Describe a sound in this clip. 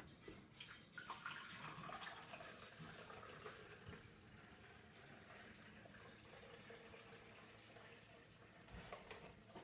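Water pours into a coffee maker.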